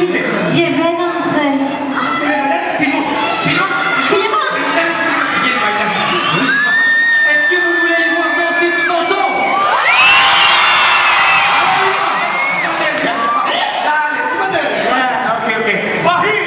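Young singers sing a pop song over loud amplified music in a large hall.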